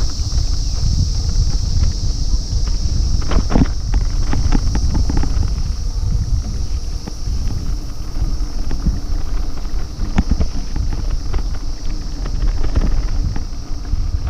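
Tyres crunch and rattle over a bumpy dirt road.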